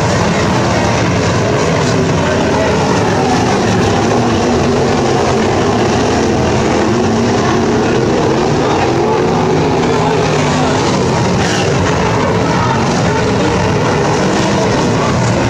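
Loud race car engines roar and rev steadily close by.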